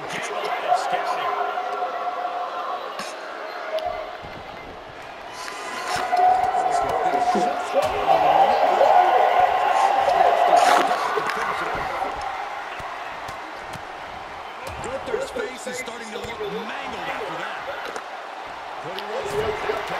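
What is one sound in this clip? A large crowd cheers and roars in a big echoing arena.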